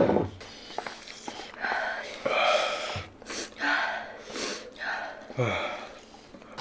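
A young woman and a young man breathe and puff heavily from spicy food.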